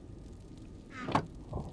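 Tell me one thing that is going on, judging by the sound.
A wooden chest creaks shut.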